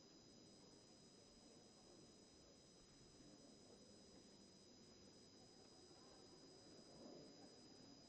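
Many people murmur and chatter quietly in a large echoing hall.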